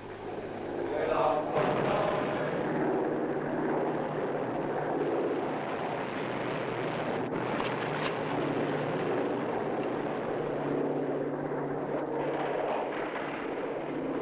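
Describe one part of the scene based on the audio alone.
Armoured car engines rumble and roar.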